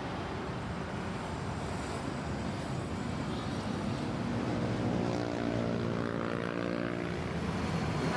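Traffic rumbles past steadily on a road.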